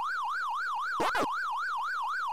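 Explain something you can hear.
An electronic blip sounds as a point is scored.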